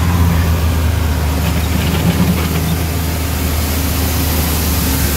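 A utility vehicle engine drones while driving.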